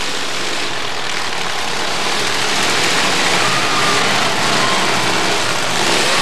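Car engines roar and rev loudly.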